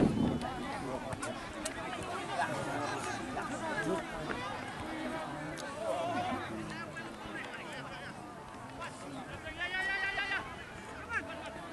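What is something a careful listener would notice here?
A large outdoor crowd of spectators chatters and shouts.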